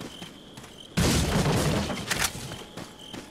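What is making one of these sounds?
A wooden crate smashes and splinters apart.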